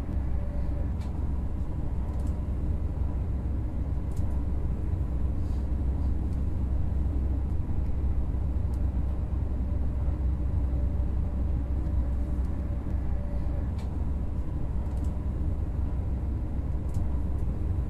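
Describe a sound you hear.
Wheels click over rail joints now and then.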